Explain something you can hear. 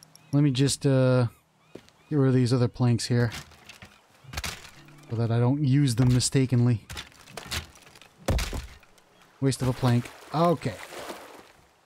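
A sledgehammer thuds against rock.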